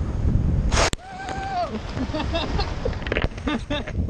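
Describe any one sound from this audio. A body slides and scrapes across grass and fabric.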